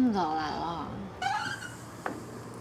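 A young woman speaks in a complaining tone, close by.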